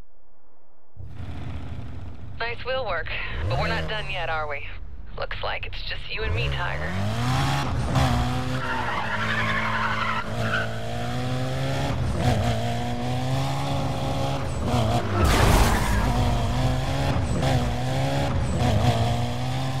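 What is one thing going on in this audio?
A car engine revs and roars as the car speeds along.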